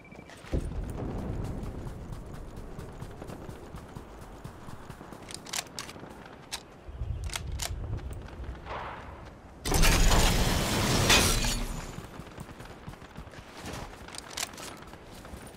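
Footsteps patter quickly on sand and dirt.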